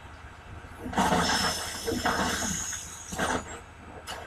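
Sparks burst and crackle from a machine in a video game.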